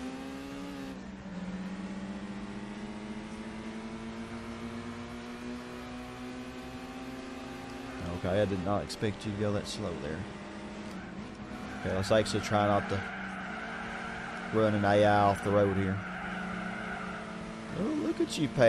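A racing car engine drones steadily, shifting gears as it speeds up.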